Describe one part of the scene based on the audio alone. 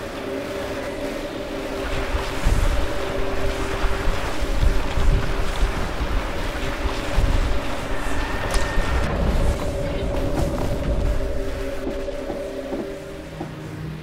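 A steady electric hum drones from a red beam.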